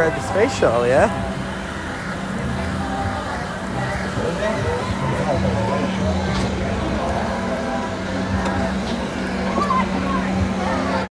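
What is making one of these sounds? Children and adults chatter and call out in the distance outdoors.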